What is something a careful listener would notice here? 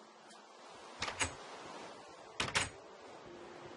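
A wooden door opens and knocks shut.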